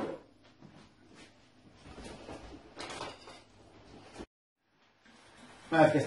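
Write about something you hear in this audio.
A drawer slides open and shut.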